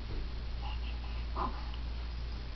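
A baby squeals and coos happily close by.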